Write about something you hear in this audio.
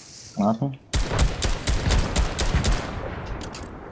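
A video game assault rifle fires in rapid bursts.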